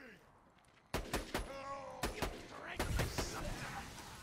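A rifle fires sharp, cracking shots.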